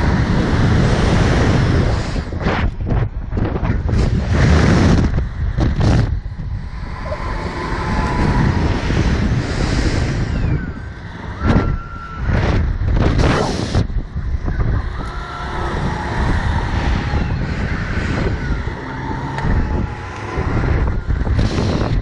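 A young woman screams.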